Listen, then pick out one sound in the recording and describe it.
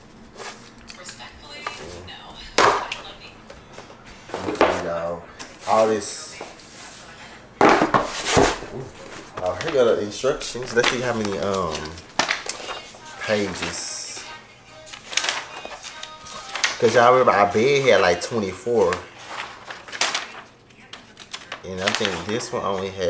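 Cardboard and paper rustle and crinkle as they are handled.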